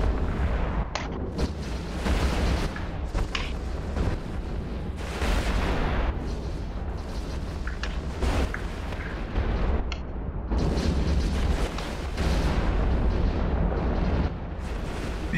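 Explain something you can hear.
Weapons fire in repeated booming bursts over a low steady rumble.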